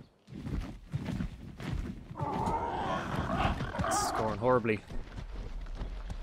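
Leathery wings flap.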